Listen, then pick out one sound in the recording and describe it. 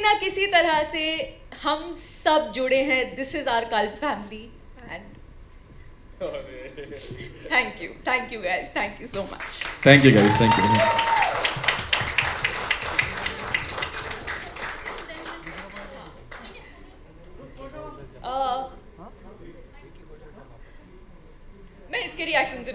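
A young woman speaks with animation through a microphone over a loudspeaker.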